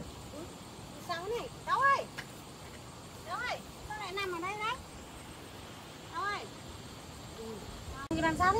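A young woman calls out in a high, rising voice nearby.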